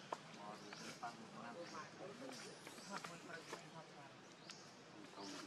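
A baby monkey suckles with soft wet smacking sounds.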